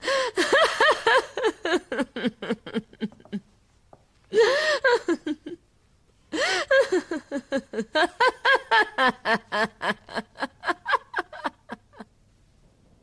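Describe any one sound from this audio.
A woman laughs loudly and heartily nearby.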